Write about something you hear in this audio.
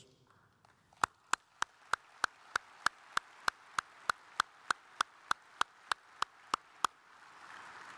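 A man claps his hands at a steady pace.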